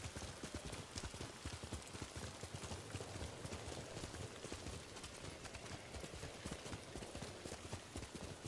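Horse hooves pound rapidly on soft ground at a gallop.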